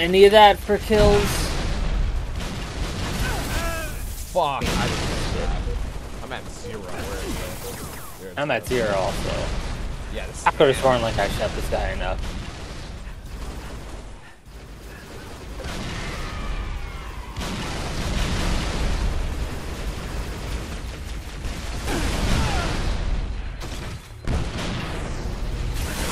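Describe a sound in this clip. Energy weapons fire in sharp, crackling bursts.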